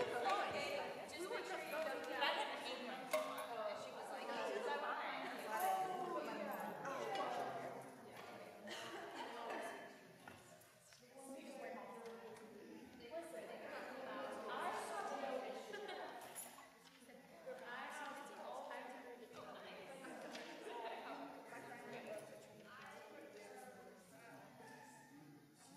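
Several young people talk and chatter nearby in a large echoing hall.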